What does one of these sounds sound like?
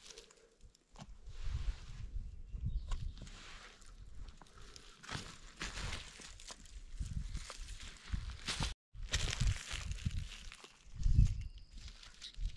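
Pruning shears snip with short clicks.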